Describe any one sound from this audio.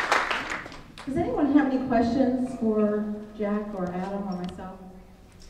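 An elderly woman speaks into a microphone through loudspeakers.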